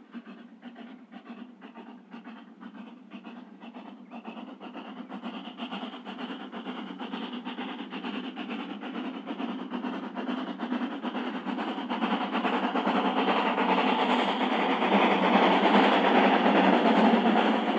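Steel wheels clatter over rail joints.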